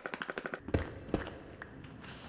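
A pickaxe chips at stone blocks.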